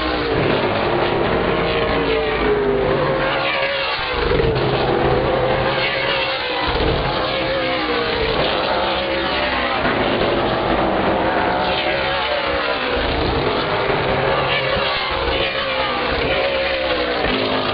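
Race car engines roar loudly, rising and falling in pitch as cars speed past.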